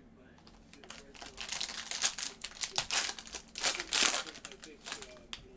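A foil wrapper crinkles and tears as hands open a pack.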